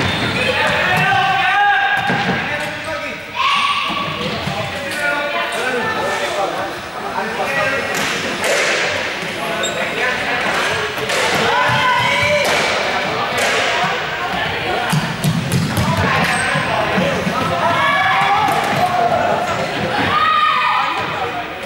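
Balls bounce on a hard floor.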